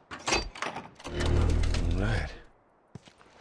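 Glass shatters loudly as a window is smashed.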